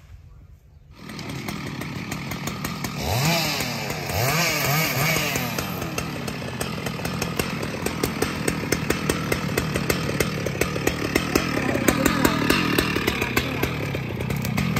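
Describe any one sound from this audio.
A chainsaw engine runs nearby.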